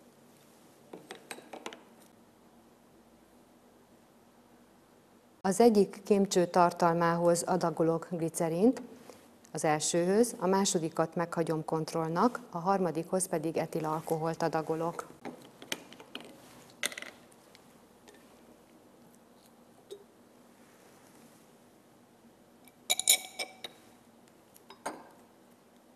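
Glass test tubes clink in a rack.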